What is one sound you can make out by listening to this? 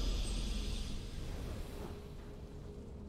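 A triumphant game victory fanfare swells and fades.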